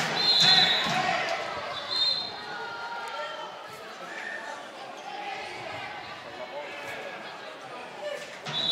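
A referee blows sharp whistle blasts in an echoing hall.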